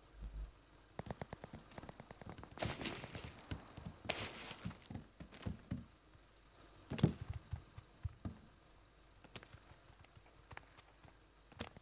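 Footsteps thud on wooden floorboards indoors.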